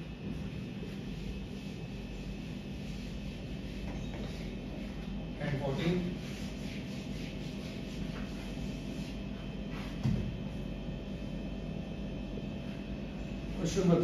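A marker erases and squeaks on a whiteboard.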